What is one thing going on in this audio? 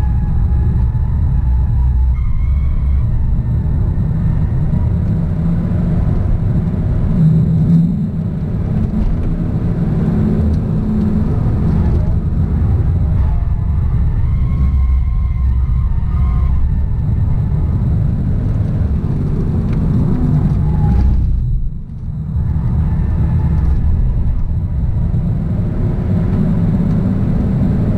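Tyres squeal on the track through corners.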